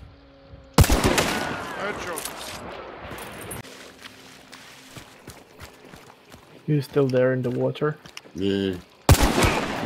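A gunshot rings out loudly and echoes away.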